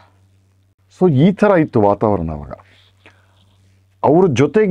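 A middle-aged man speaks calmly and expressively into a close microphone.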